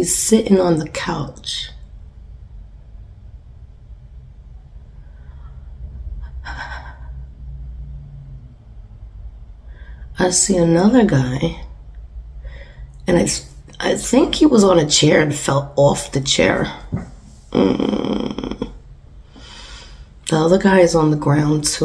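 A young woman talks with animation through a microphone, pausing now and then.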